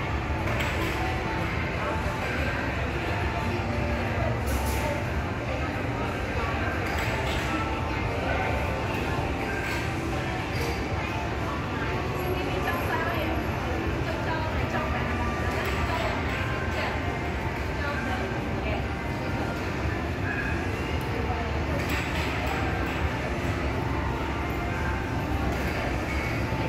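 A crowd murmurs and chatters steadily in a large, echoing hall.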